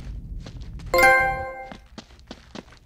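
A short chiming jingle plays.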